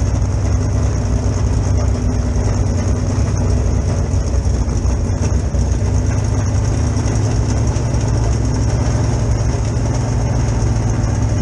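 Race car engines idle with a loud, deep, steady rumble close by.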